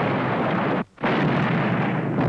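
A cannon fires with a loud bang.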